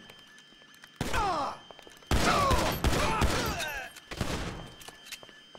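A pistol fires several sharp shots that echo down a hallway.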